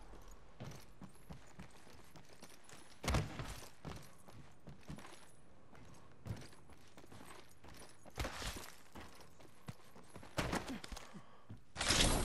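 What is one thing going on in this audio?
Footsteps clatter quickly on metal.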